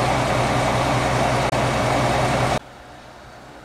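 A diesel locomotive engine idles with a steady low hum.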